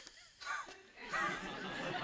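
A woman laughs softly.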